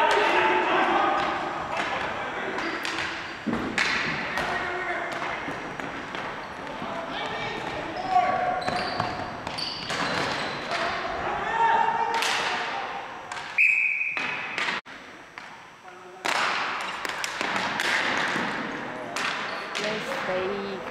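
Ball hockey sticks clack against a ball and a hard floor in a large echoing hall.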